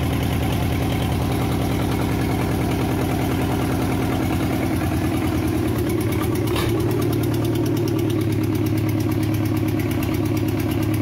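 A diesel engine runs close by with a loud, steady, rapid knocking rattle.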